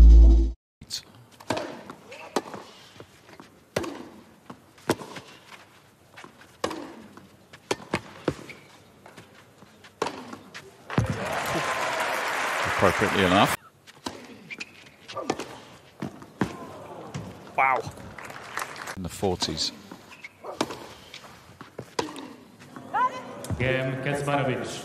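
Tennis rackets strike a ball with sharp pops.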